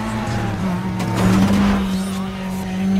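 A car whooshes past close by.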